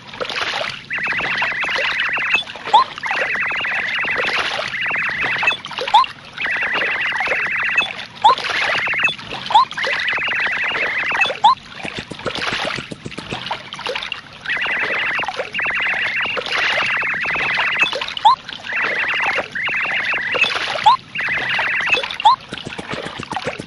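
Rapid high electronic blips chatter in bursts as dialogue text prints out.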